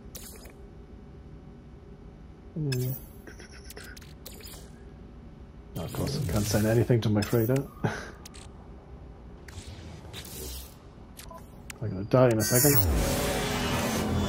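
Short electronic menu chimes and clicks sound now and then.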